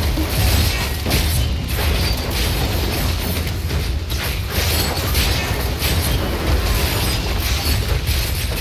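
Magic blasts crackle and boom in quick bursts.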